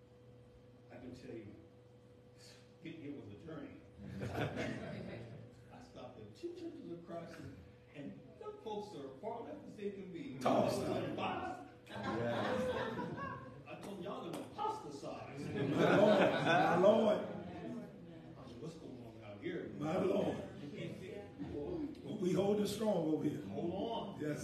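A middle-aged man speaks with animation through a microphone in a large echoing room.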